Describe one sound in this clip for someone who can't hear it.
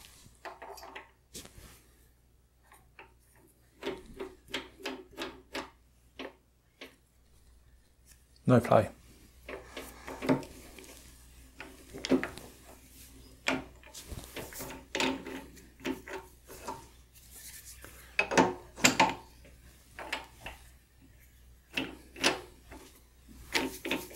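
Small metal parts click and clink.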